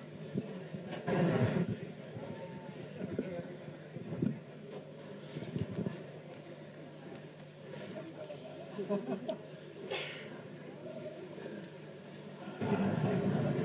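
A man speaks calmly into a microphone in a large room.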